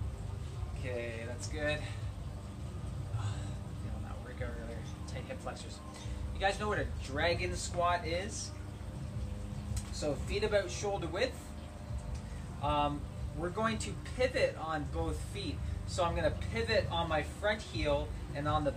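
A man talks calmly nearby, outdoors.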